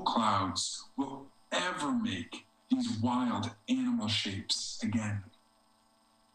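A man speaks with animation, heard through an online call.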